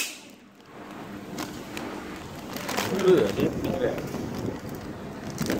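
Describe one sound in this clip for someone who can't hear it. A plastic pouch crinkles as hands feed it into a sealing machine.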